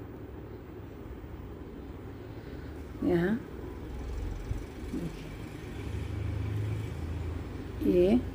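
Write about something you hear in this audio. Knitting needles click and scrape softly against yarn.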